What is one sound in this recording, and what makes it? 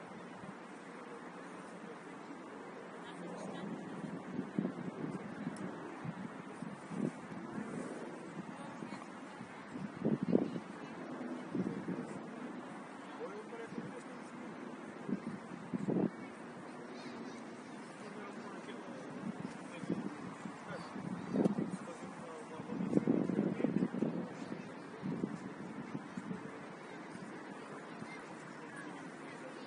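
A small crowd chatters and calls out in the distance, outdoors.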